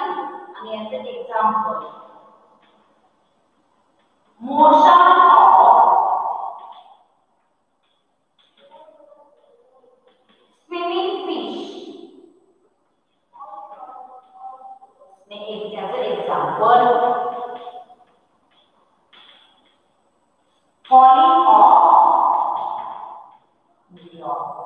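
A woman speaks slowly and clearly nearby, in pauses.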